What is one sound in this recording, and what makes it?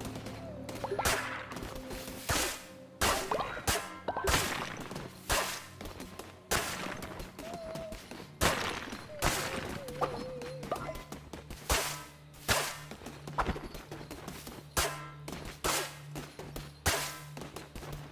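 Sharp video game strikes and swooshes ring out again and again.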